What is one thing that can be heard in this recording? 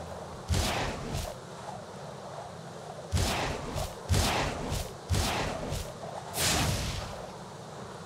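Wings flap with loud whooshing bursts.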